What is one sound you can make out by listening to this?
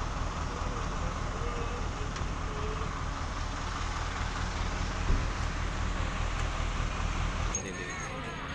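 A large engine idles nearby with a low rumble.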